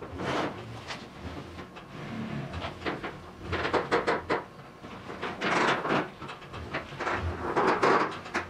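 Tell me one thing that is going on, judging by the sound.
A trailer rattles as it rolls over concrete.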